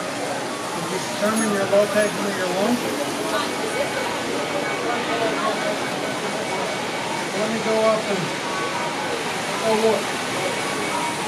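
An elderly man talks nearby.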